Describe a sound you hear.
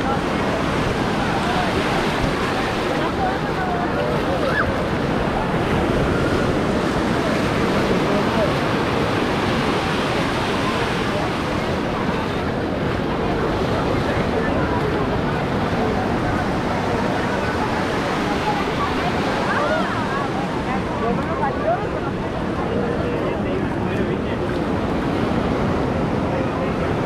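A large crowd chatters and calls out all around, outdoors.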